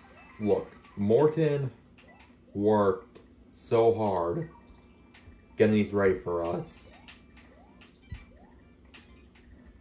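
Video game sound effects chime and bleep.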